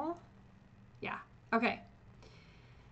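A middle-aged woman speaks calmly into a microphone, in short bursts.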